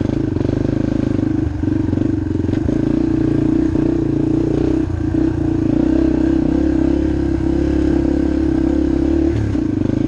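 Tyres rumble and crunch over a dirt track.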